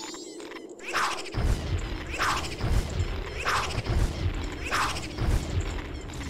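Game skeletons clatter and thud as they rise and dance.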